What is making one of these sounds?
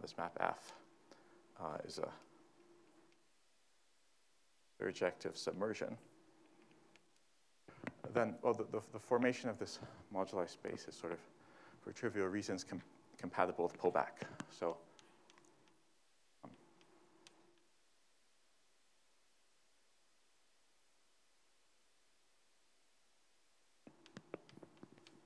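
A man lectures calmly, in bursts with pauses.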